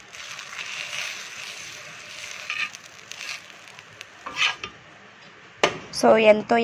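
Batter sizzles softly on a hot pan.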